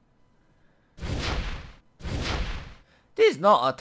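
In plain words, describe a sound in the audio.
Video game sword slashes and hits land in quick bursts.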